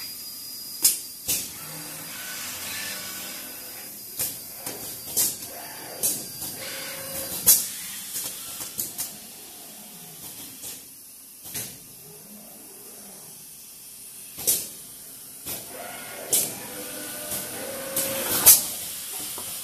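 Automated production line machinery clicks and clacks.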